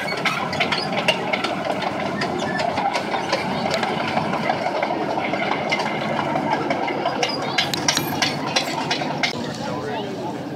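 Metal tank tracks clank and rattle.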